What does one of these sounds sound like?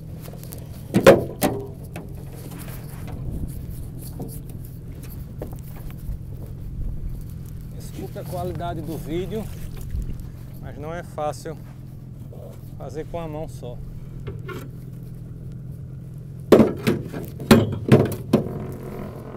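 A metal anchor clanks against a boat's side.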